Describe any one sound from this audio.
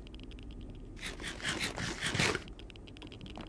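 Someone munches food with quick crunching bites.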